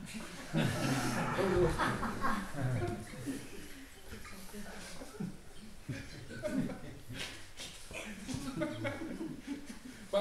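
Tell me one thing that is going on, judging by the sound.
A middle-aged man laughs heartily close by.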